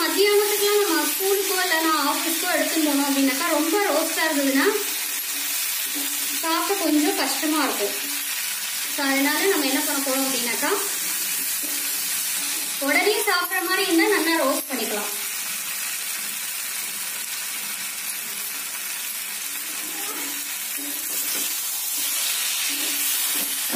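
A spatula scrapes and stirs food in a metal pan.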